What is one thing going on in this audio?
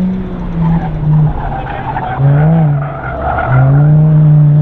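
Tyres squeal on pavement as a car turns sharply.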